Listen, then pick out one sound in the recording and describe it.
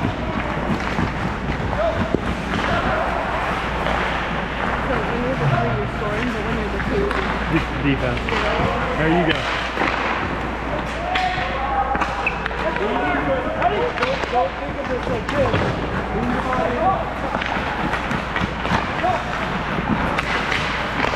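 Skate blades scrape and hiss on ice.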